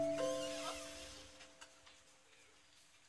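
A piano chord rings out and slowly dies away.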